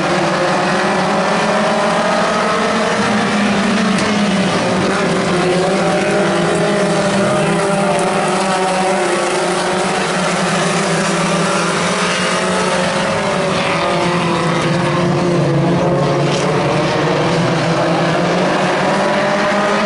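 Race car engines rev up and down.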